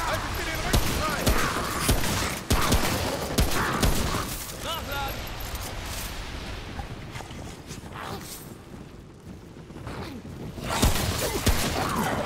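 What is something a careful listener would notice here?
Gunshots bang sharply in quick bursts.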